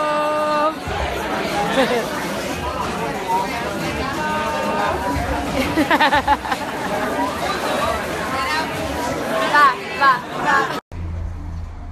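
A crowd chatters loudly in a busy, noisy room.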